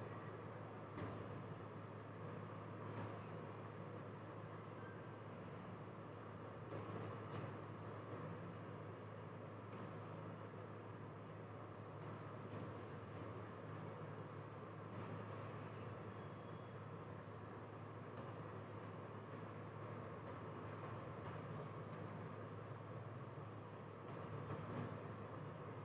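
Bangles clink softly on a wrist.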